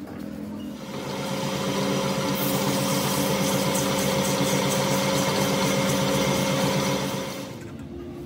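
A hand grinding tool whirs and scrapes against spinning metal.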